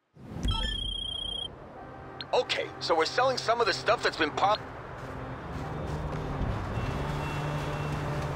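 Footsteps run over snowy ground.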